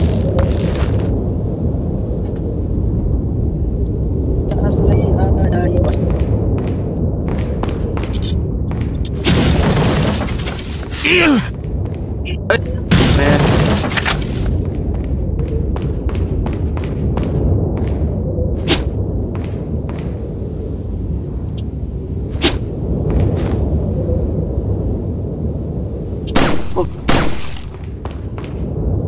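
A young man talks into a nearby microphone.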